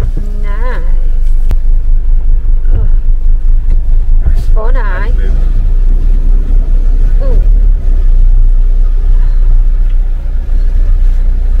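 A car engine rumbles low and steady while driving slowly.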